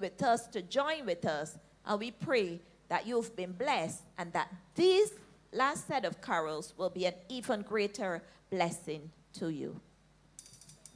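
An elderly woman speaks with feeling through a microphone.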